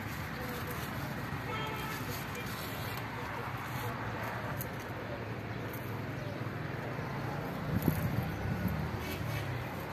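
Leaves rustle as a hand brushes through them.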